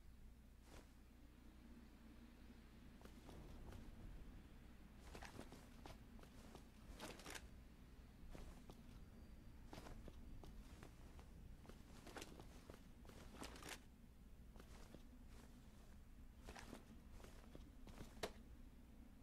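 Footsteps scuff softly on wet paving.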